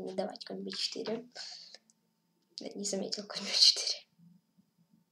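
A boy speaks with animation close to a microphone.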